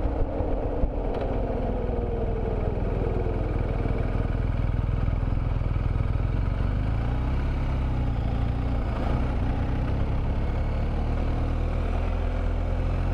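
A motorcycle engine hums steadily and shifts in pitch as it slows and speeds up.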